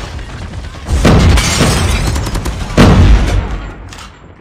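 Sniper rifle shots boom loudly from a video game.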